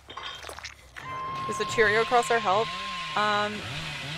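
A chainsaw roars and revs.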